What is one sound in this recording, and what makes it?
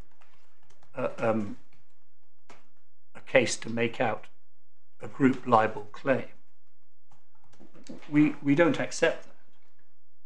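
A man speaks calmly and formally through a microphone, in short phrases with pauses.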